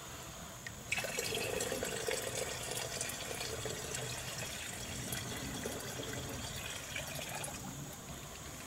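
Water trickles and splashes into a shallow puddle.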